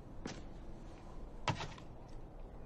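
A small object clicks down on a table.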